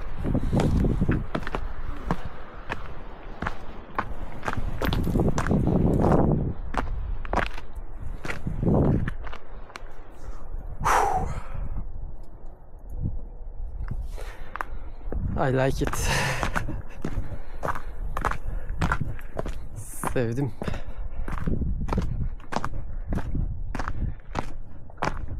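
Footsteps crunch on loose stones and gravel.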